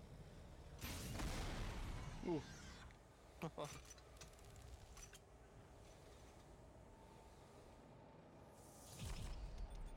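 Jet thrusters hiss and roar in bursts.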